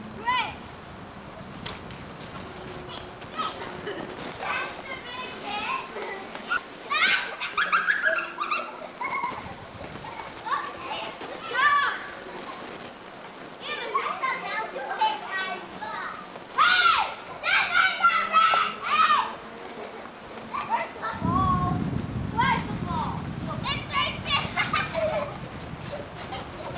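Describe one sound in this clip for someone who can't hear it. Young children shout and call out playfully outdoors, a short distance away.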